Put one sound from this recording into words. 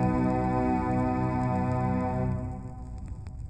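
Orchestral music plays from an old gramophone record.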